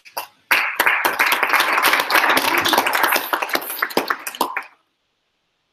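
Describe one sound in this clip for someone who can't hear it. An audience applauds loudly in a large room.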